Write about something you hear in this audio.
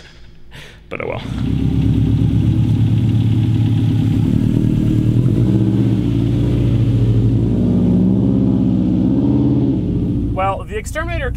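A car engine rumbles loudly as a car drives out.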